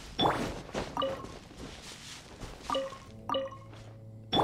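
A bright game chime rings as an item is picked up.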